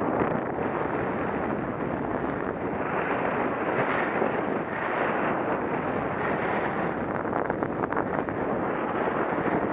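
Skis scrape and hiss steadily over packed snow.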